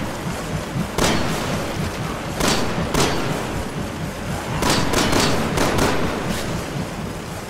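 Gunshots ring out in quick bursts, echoing off stone walls.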